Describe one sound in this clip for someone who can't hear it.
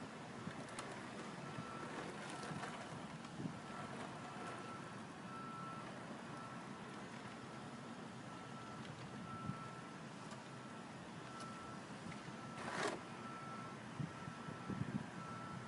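A small tracked robot knocks and scrapes on concrete as it flips over.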